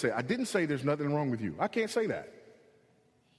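A man speaks with emphasis through a microphone.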